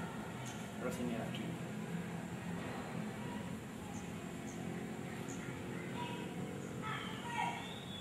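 Bare feet shuffle and step on a hard floor.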